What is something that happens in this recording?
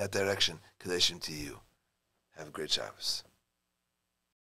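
A man speaks calmly into a close microphone.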